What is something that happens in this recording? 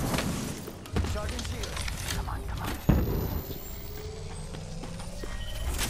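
A mechanical whirring and clicking of a device being charged plays.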